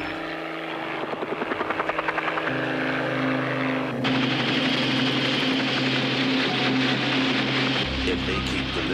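A propeller plane's engine drones overhead.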